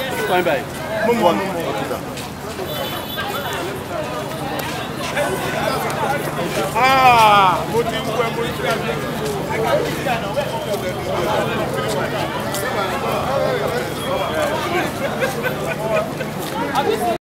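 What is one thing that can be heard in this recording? A crowd of men and women chatter outdoors.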